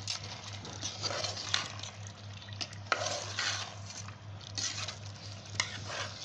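A metal spoon scrapes and stirs in a pot.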